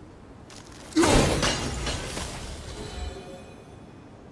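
A thrown axe returns and strikes with a loud crack, ringing out afterwards.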